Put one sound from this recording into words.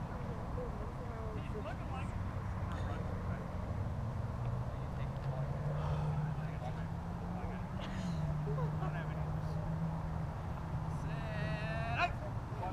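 Young men shout to each other far off across an open field.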